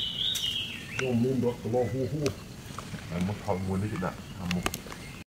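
A monkey calls out nearby with short, repeated grunting cries.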